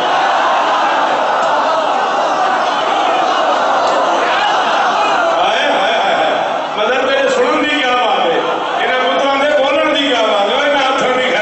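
A man speaks loudly and passionately into a microphone, heard through loudspeakers in an echoing hall.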